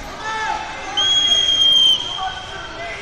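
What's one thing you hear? A referee's whistle blows one long shrill blast.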